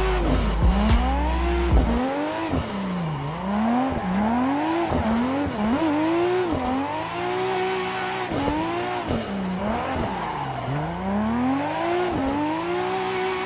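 Tyres screech while a car slides through corners.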